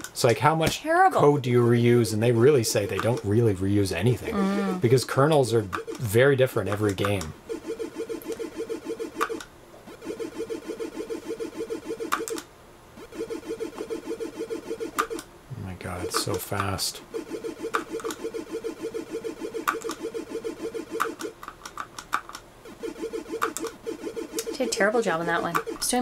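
Retro video game music plays in short chirpy bleeps.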